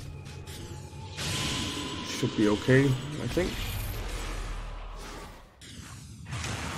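Game battle effects clash and crackle with magic blasts.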